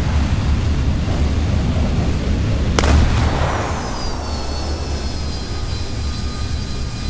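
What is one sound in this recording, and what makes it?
Aircraft engines drone steadily with a low rumble.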